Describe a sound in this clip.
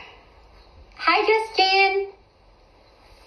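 A young woman sings a short phrase in a high, playful voice close by.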